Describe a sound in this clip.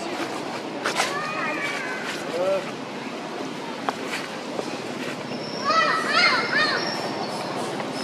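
Young monkeys give high chirping squeals.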